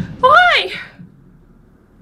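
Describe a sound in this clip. A young woman screams loudly into a microphone, then falls quiet.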